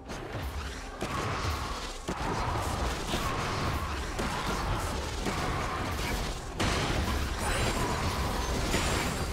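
Video game weapons strike with sharp hits.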